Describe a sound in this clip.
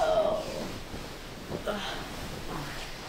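A bedsheet rustles and swishes.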